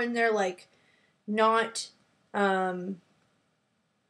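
A woman speaks close to the microphone in short, animated bursts.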